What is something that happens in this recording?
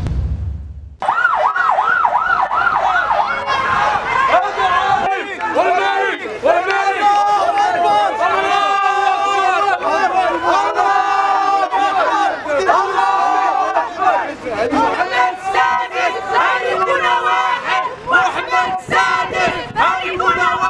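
A crowd of men chants loudly in unison close by, outdoors.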